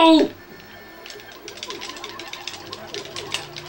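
Quick game sound effects patter and tick.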